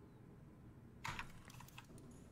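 A soft electronic chime sounds as a menu opens.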